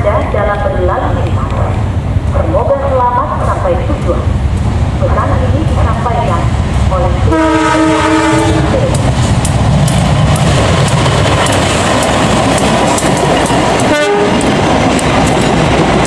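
A diesel locomotive engine rumbles close by.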